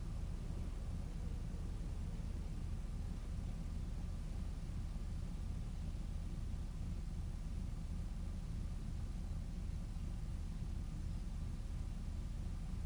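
Several car engines idle with a low, steady rumble.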